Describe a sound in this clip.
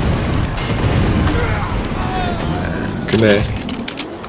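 A fiery explosion roars and crackles.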